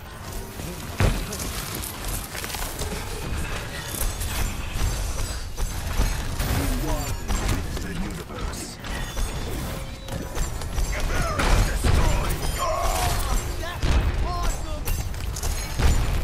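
Blasts and impacts boom and crackle.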